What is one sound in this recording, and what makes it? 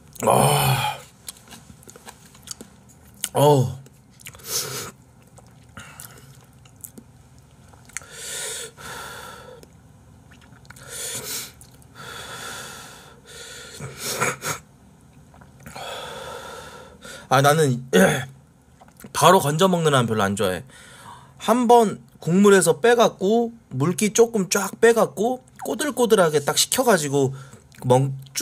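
A young man talks casually and closely into a microphone.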